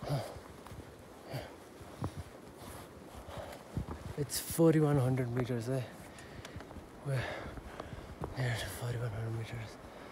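Footsteps crunch on dry grass and gravel.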